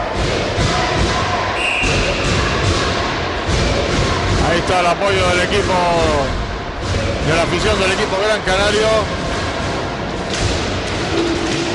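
Hockey sticks clack against each other and a ball.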